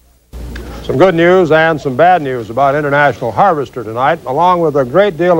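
A middle-aged man speaks calmly and clearly into a microphone, like a newsreader.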